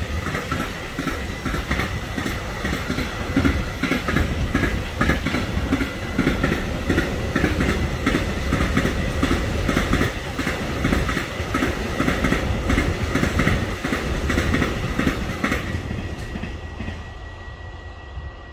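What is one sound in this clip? A long freight train rumbles past with clattering wheels, then fades into the distance.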